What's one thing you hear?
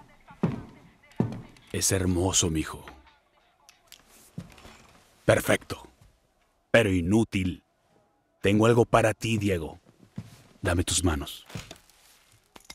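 A man speaks calmly in a low, deep voice, close by.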